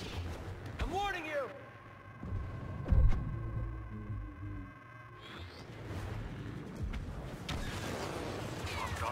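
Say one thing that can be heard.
Lightsabers hum and swing with whooshing sweeps.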